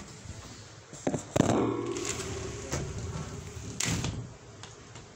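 A phone knocks and scrapes as it is set down on concrete.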